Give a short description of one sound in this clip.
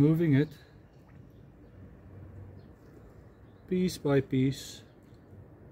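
Liquid trickles softly from a can into a small plastic reservoir.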